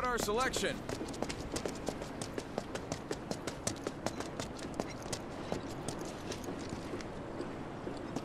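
Footsteps tap briskly on a hard floor.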